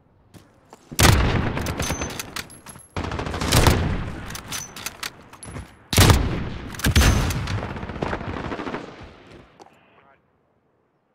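A sniper rifle fires loud, booming shots that echo away.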